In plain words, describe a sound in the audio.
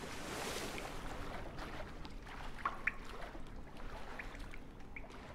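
Water swishes and churns around a swimmer.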